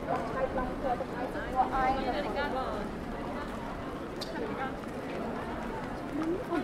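Voices of a crowd murmur and chatter nearby outdoors.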